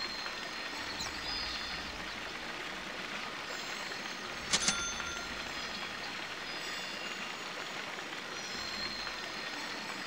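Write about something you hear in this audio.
Soft video game background sounds play steadily.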